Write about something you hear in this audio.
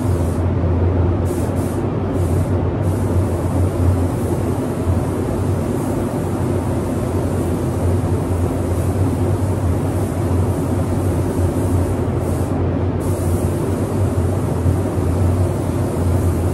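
A spray gun hisses steadily as it sprays paint.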